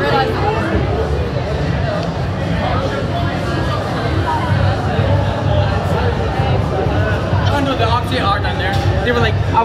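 A crowd of young men and women chatters and laughs close by outdoors.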